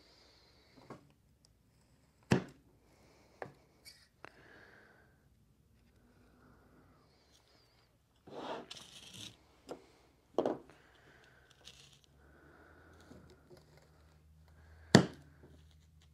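A metal soil blocker clicks and thumps as it presses into damp soil.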